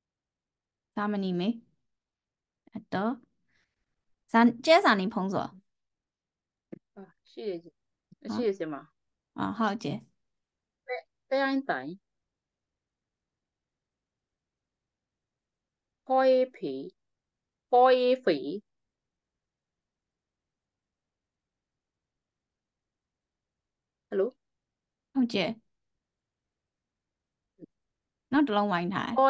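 A woman speaks clearly and slowly over an online call, pronouncing syllables.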